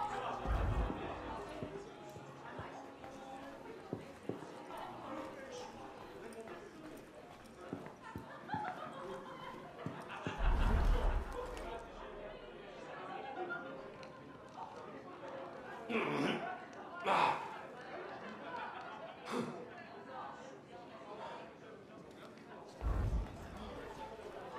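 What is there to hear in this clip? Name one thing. Soft footsteps creep across a wooden floor.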